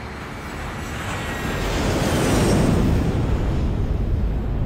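An aircraft roars past overhead.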